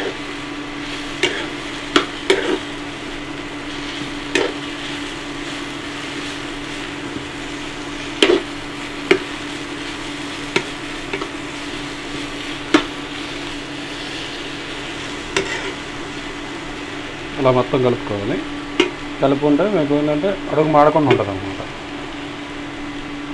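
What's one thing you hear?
Vegetables sizzle softly in a hot pan.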